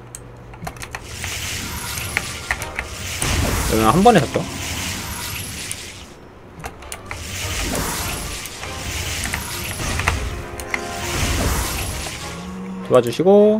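A magic spell whooshes and crackles in bursts.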